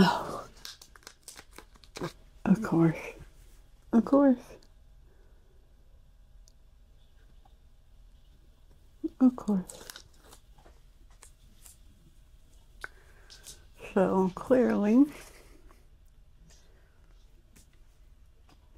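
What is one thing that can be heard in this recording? Paper rustles as hands handle it.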